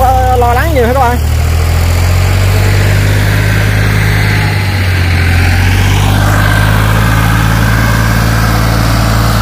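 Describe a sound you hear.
A tractor engine rumbles steadily nearby.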